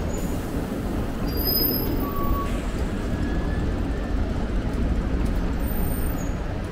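Bicycle tyres roll over a paved street.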